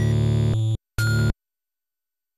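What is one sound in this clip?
A short electronic selection beep sounds.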